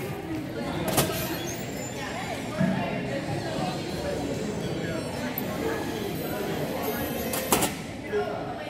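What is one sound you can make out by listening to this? A volleyball is struck with sharp slaps in an echoing gym.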